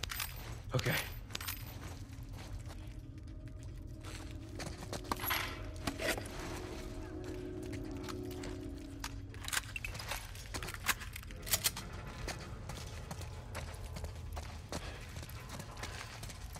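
Footsteps tread on a hard floor.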